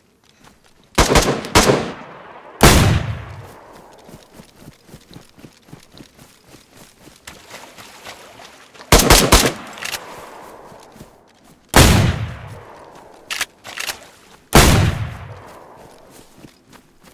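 A pump-action shotgun fires loud shots that echo outdoors.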